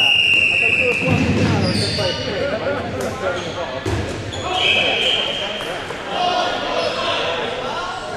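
Balls bounce and thud on a hard floor.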